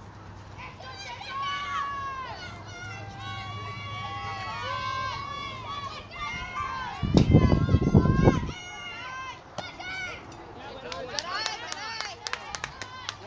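Young girls shout and cheer from across an open field.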